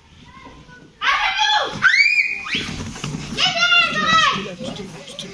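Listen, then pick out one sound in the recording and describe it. Young girls shriek and shout loudly close by.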